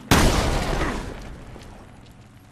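A gunshot booms and echoes away.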